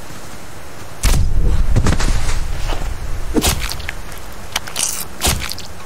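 A blade chops wetly into a carcass with repeated heavy thuds.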